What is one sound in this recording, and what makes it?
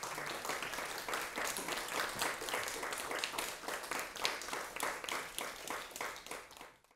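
An audience claps steadily, then the clapping fades out.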